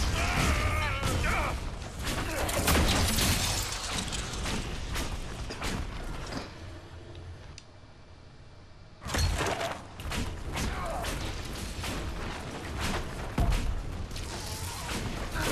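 Weapons clash and strike in quick hits.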